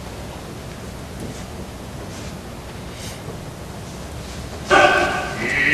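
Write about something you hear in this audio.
A man speaks quietly, heard from a distance.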